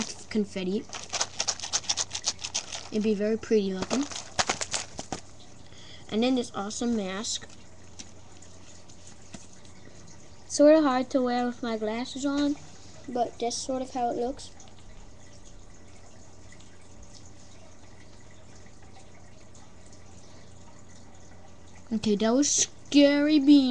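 A young girl talks with animation close by.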